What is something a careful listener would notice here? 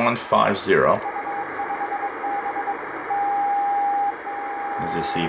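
Morse code beeps through a radio loudspeaker.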